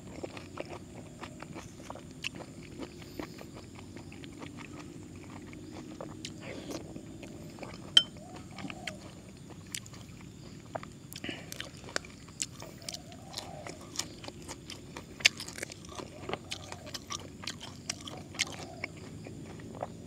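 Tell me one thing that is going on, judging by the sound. A man chews food loudly and wetly, close to the microphone.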